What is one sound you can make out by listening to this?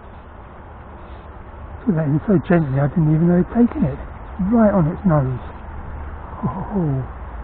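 A fish splashes at the surface of the water.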